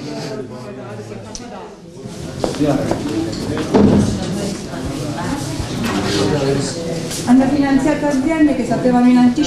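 A young woman speaks in a tearful voice close by.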